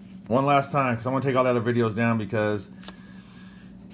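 A pencil scratches across paper.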